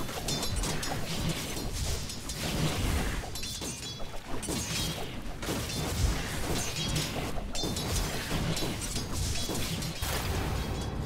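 Game spell effects and weapon clashes crackle and thump in a busy fight.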